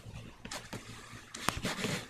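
Fingers tap on laptop keys.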